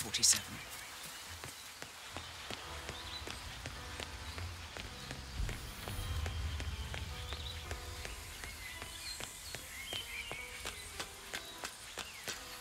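Footsteps tap steadily on a hard walkway.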